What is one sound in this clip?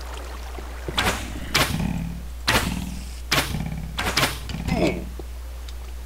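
A pickaxe chips at stone in short, repeated knocks.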